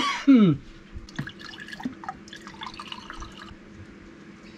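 Water is poured into a plastic cup.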